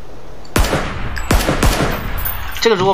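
Several gunshots fire in quick succession.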